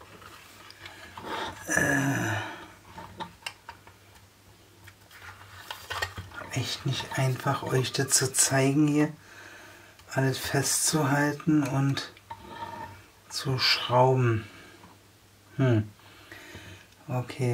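A small screwdriver turns a screw with faint scraping.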